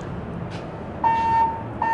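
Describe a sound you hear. An elevator chime rings once.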